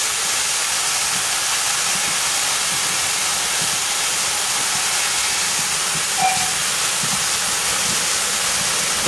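A steam locomotive chugs closer along the rails.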